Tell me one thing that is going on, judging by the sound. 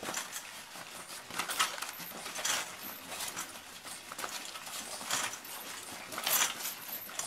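A dog's paws thump and patter on a bouncing trampoline mat.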